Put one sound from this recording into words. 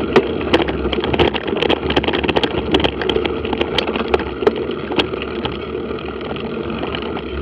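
Wind rumbles low and steady outdoors.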